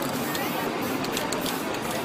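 An aerosol spray can hisses.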